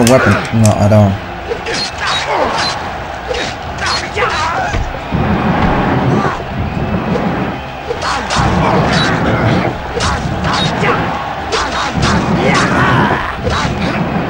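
Swords clash and clang repeatedly.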